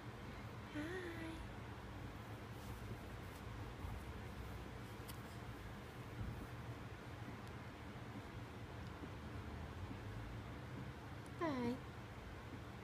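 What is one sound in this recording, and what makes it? An infant coos softly.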